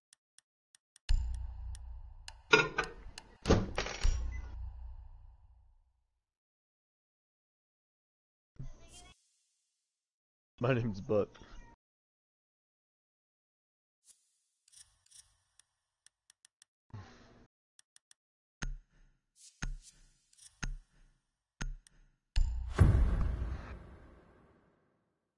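Short menu clicks and swooshes sound now and then.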